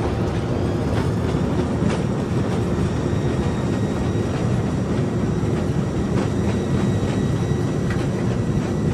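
Aircraft wheels thump over joints in the pavement.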